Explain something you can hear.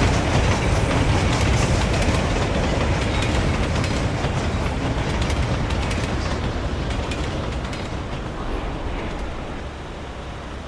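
A steam train chugs and rumbles along the tracks.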